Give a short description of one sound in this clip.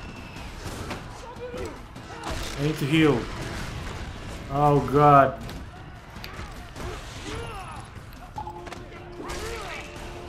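Heavy blows thud in a brawl.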